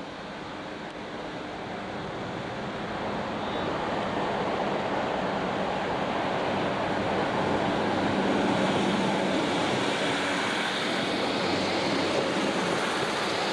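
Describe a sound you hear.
A diesel locomotive rumbles closer, its engine growing louder.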